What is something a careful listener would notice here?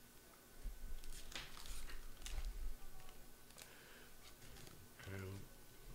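A plastic card sleeve crinkles and rustles in someone's hands.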